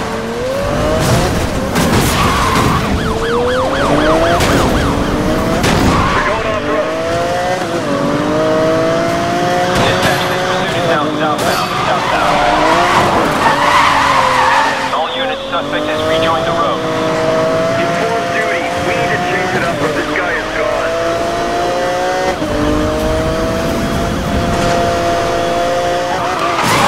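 A sports car engine roars and revs up and down as it races.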